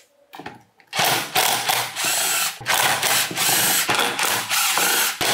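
A cordless drill whirs loudly in short bursts.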